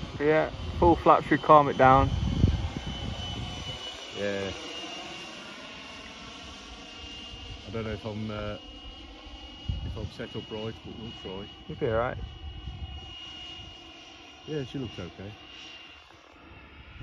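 A small plane drones overhead in the distance.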